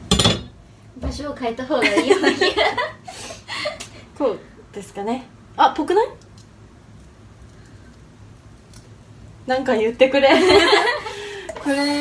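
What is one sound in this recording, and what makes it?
A young woman talks brightly and laughs close by.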